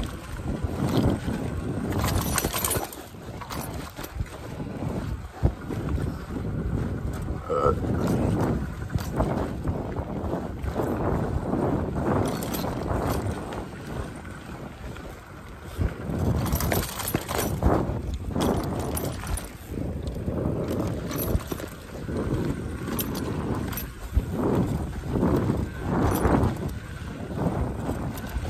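Bicycle tyres roll and crunch over a bumpy dirt trail.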